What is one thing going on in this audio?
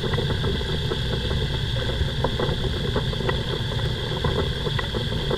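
A small aircraft engine drones loudly and steadily close by.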